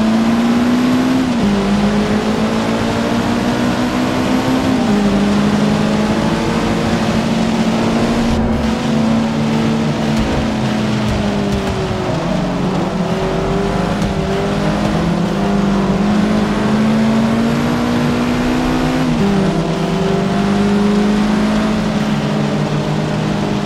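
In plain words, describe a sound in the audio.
A car engine roars steadily and shifts gears, its pitch dropping with each change.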